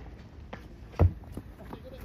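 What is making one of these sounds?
A bat hits a ball with a sharp crack.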